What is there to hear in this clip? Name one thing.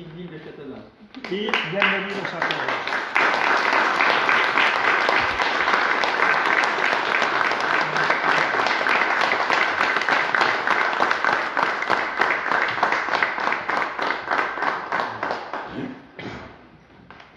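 A small group applauds with steady clapping.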